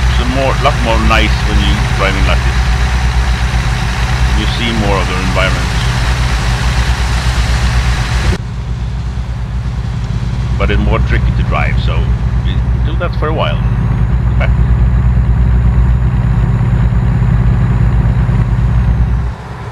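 A truck engine rumbles steadily with a low drone.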